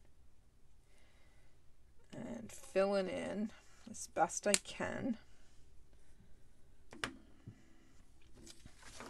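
Paper rustles and slides under a hand.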